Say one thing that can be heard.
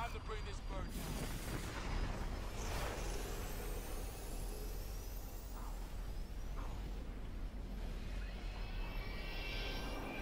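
Jet aircraft engines roar overhead.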